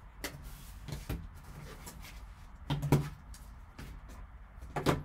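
Foam packing rubs and thumps as it is lifted out of a box.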